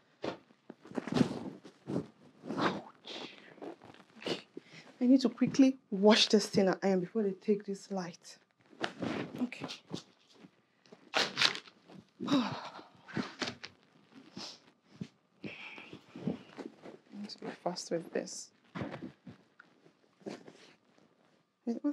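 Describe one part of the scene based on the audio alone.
Clothes rustle and flap.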